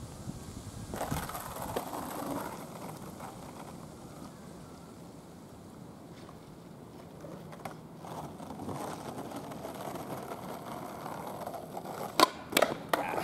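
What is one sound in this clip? Skateboard wheels roll and rumble over rough asphalt.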